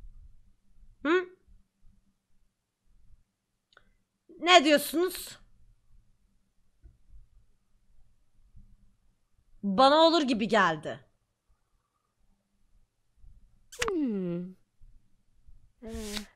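A young woman speaks in short, lively bursts close to a microphone.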